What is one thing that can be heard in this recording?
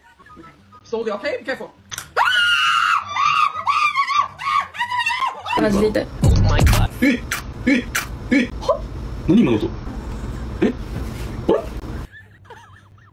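A young woman shrieks and laughs.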